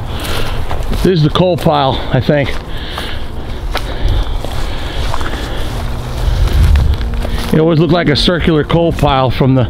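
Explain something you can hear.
Footsteps crunch through dry grass and brush.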